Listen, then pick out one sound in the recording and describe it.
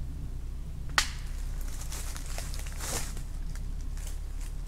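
Dry leaves crunch and rustle underfoot.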